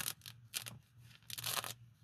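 Gloved hands rustle against fabric pouches.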